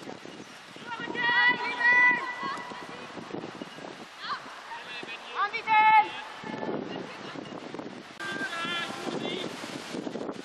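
Young women shout calls across an open field.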